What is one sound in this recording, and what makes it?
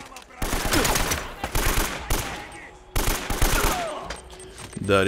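Automatic rifle fire rattles in rapid bursts.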